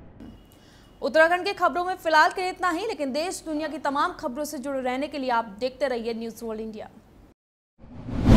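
A young woman reads out news clearly into a studio microphone.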